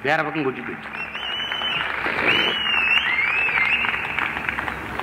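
People in a large crowd whistle shrilly.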